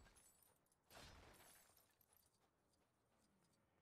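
Small game pieces clatter and scatter after a blast.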